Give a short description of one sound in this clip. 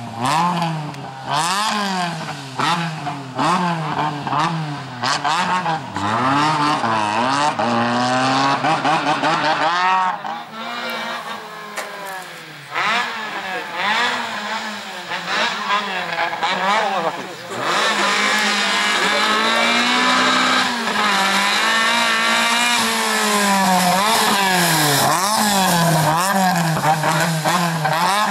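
A rally car engine revs hard, rising and falling quickly as the car weaves.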